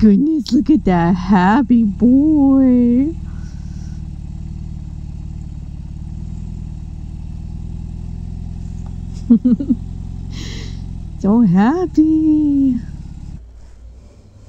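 A motorcycle engine rumbles steadily while riding slowly.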